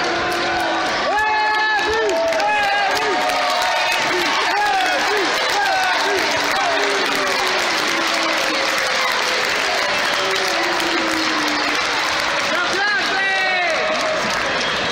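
Spectators whistle and shout loudly.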